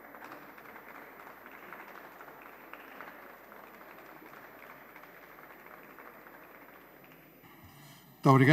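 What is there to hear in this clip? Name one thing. Many people murmur and chatter quietly in a large hall.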